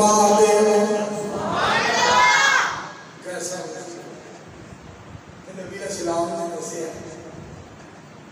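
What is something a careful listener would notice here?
A man preaches passionately into a microphone, his voice ringing through loudspeakers.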